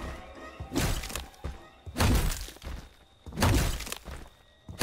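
An axe chops hard into a wooden door.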